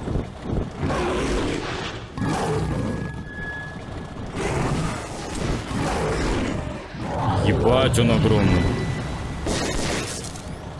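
A large creature roars and growls loudly.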